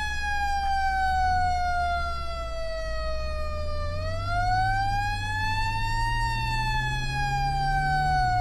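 A vehicle engine hums steadily as the vehicle drives.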